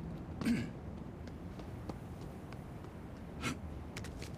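Footsteps fall on a hard surface.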